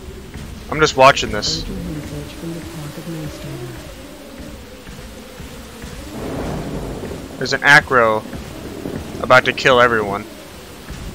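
A large dinosaur roars loudly.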